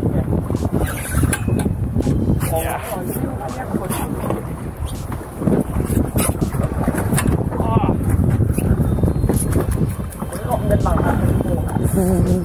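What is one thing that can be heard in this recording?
Wind buffets loudly, outdoors on open water.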